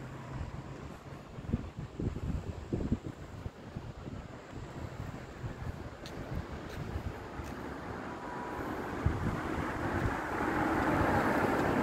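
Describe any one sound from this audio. Wind blows outdoors, rising toward the end.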